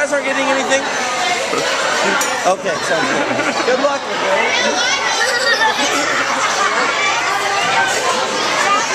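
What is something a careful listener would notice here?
A crowd chatters loudly around.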